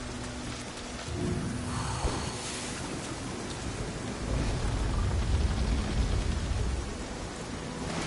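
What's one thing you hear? Heavy wooden doors creak and rumble open.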